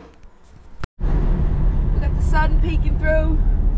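A car engine rumbles steadily from inside the car.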